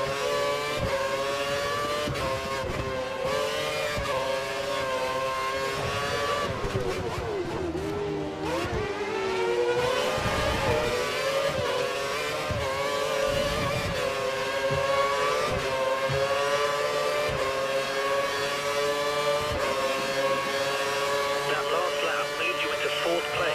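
A racing car engine screams at high revs, dipping in pitch as the car slows for corners and climbing again as it speeds up.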